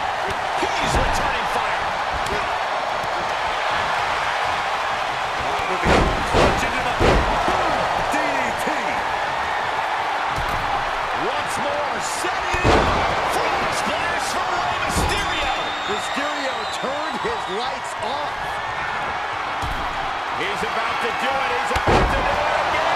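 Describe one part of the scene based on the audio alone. Heavy bodies slam onto a wrestling ring's mat with deep thuds.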